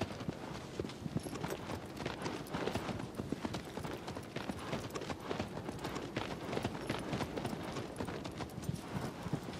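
Horse hooves gallop quickly over grass.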